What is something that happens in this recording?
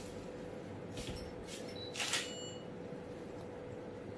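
Perfume sprays from a bottle in short hisses.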